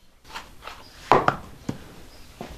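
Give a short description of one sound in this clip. A shoe drops onto the floor.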